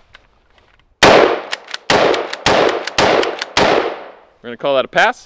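A rifle fires several loud shots in quick succession, echoing outdoors.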